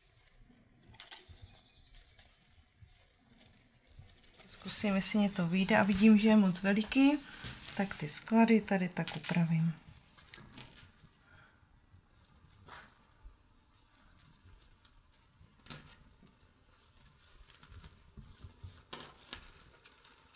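Lace fabric rustles softly as it is handled.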